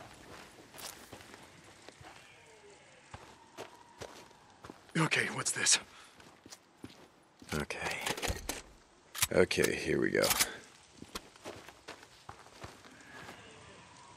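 Footsteps run over gravel.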